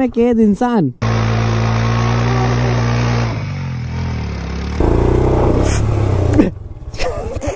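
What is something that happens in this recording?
A motorcycle engine revs loudly.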